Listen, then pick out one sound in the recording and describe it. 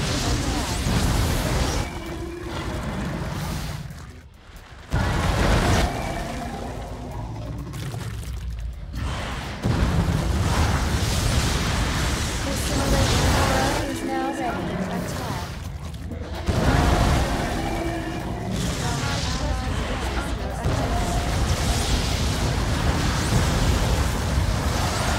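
Game weapons fire and crackle in a noisy battle.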